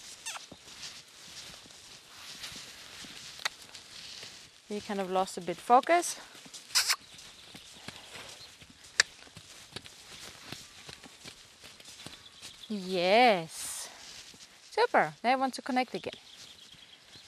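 Hooves thud softly on sand.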